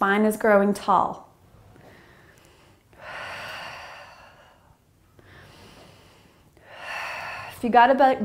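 A woman speaks calmly and clearly close to a microphone.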